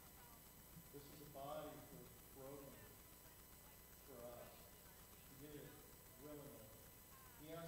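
A middle-aged man speaks calmly into a microphone in an echoing hall.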